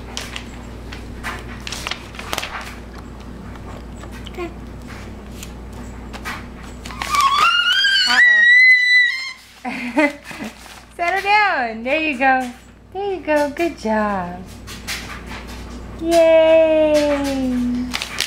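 A baby's hands pat and smear wet paint on paper.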